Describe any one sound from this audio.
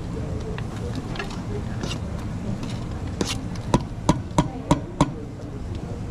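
A metal spoon scrapes and clinks against a saucepan.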